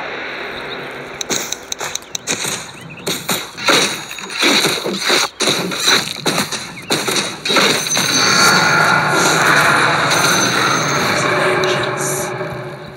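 Video game combat sounds clash and thud.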